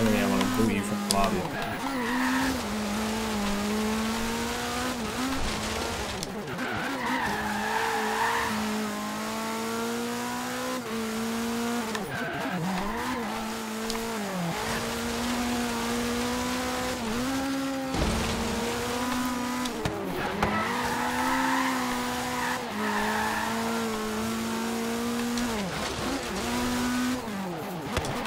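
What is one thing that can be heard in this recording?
A racing car engine revs hard and drops in pitch at each gear change.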